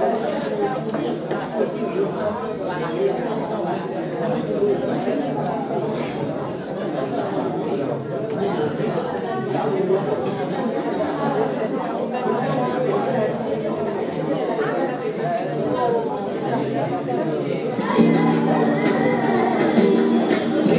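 A crowd of elderly men and women chatter at once in a large echoing hall.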